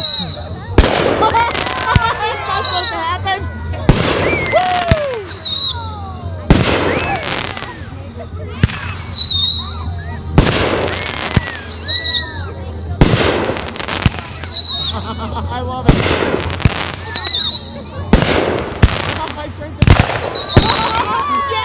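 Sparks crackle after the fireworks burst.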